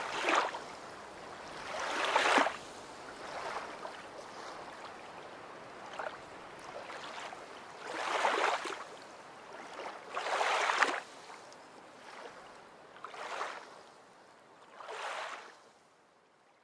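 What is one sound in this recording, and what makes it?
River water splashes and laps close by in bursts.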